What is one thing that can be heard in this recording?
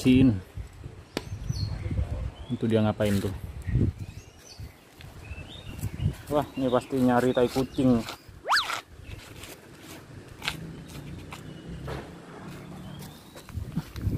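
A small animal chirps softly close by.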